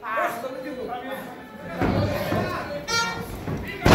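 A referee slaps the ring mat while counting.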